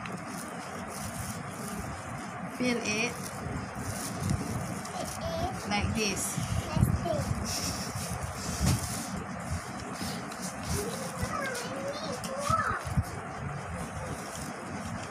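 Rice grains rustle and patter as hands scoop them.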